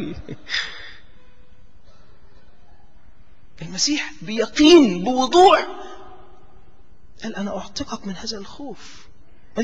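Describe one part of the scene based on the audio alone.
A middle-aged man preaches with animation into a microphone, in bursts with pauses.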